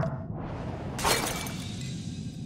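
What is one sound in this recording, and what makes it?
A glass bowl shatters.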